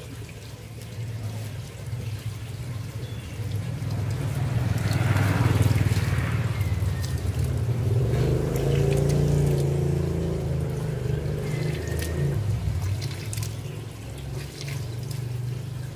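Water from a hose splashes into a battery and onto concrete.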